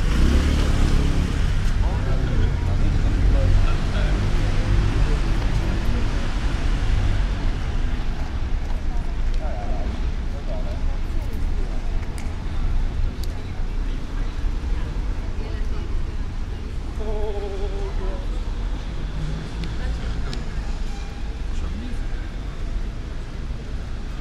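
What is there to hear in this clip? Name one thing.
Men and women chatter quietly in the distance outdoors.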